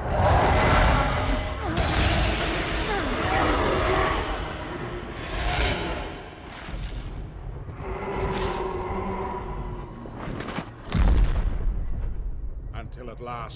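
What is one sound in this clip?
Fire roars with deep rumbling blasts.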